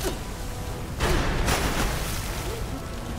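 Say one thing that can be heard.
Water splashes heavily.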